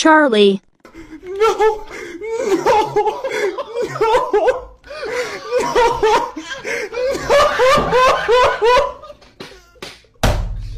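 A young man sobs and wails into a headset microphone.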